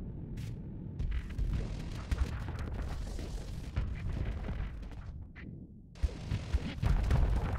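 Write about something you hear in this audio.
Low rumbling explosions boom.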